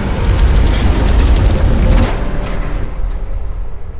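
A heavy vehicle engine rumbles loudly, then fades away.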